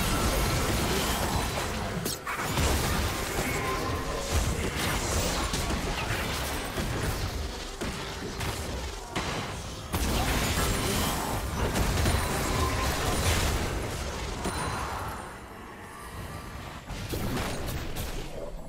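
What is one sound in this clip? Game spell effects burst and crackle in a fast fight.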